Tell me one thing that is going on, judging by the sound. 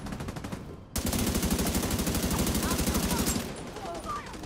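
A heavy machine gun fires in a rapid burst.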